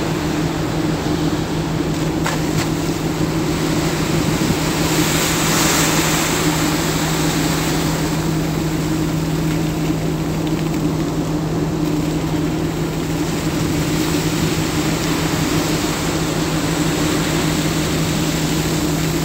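Waves rush and churn against a moving ship's hull.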